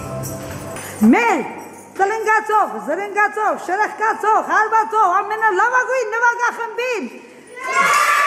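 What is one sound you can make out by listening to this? A group of young children sing together in an echoing hall.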